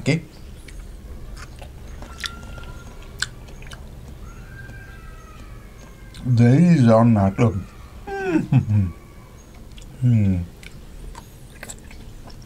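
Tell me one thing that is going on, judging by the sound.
A man crunches on a pickle.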